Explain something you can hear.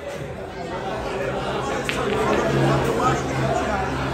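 Pool balls clack together as a cue ball strikes them.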